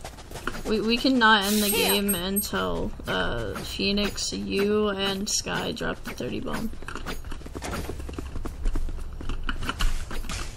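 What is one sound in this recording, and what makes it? Quick footsteps patter on hard ground.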